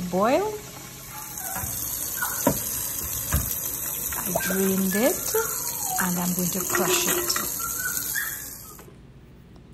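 Hot water splashes as it pours out into a metal colander.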